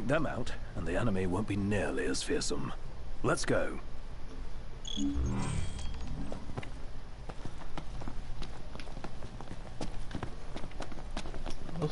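Footsteps run quickly over a hard floor.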